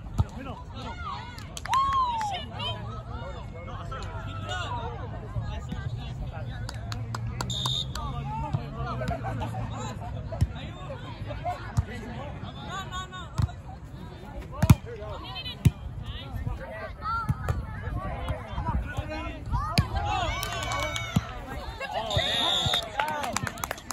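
A volleyball is hit with a sharp slap.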